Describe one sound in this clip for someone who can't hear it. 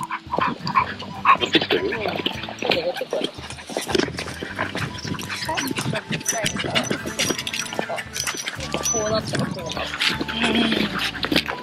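Footsteps patter on pavement.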